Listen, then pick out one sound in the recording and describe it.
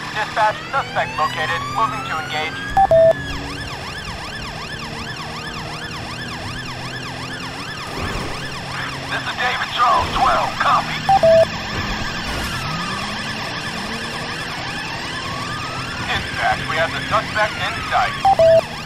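A police siren wails and yelps steadily.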